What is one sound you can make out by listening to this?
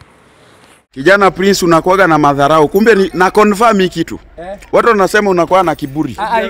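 A young man speaks loudly and with animation close by.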